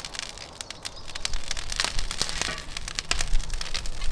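A metal scoop scrapes and rattles charcoal inside a stove.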